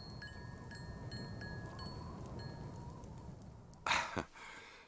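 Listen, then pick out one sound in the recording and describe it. A fire crackles under a kettle.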